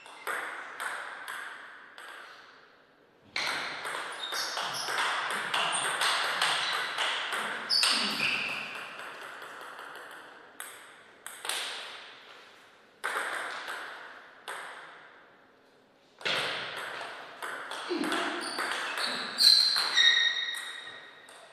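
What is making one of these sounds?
A ping pong ball clicks back and forth off paddles and table in a quick rally.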